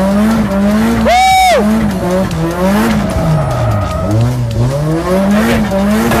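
Tyres squeal loudly on pavement.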